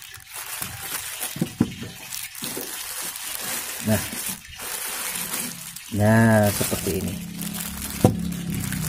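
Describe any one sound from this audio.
Plastic packaging crinkles and rustles as hands tear it open.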